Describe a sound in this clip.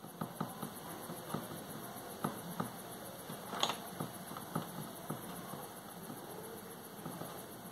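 A paintbrush dabs and scrapes in a watercolour paint palette.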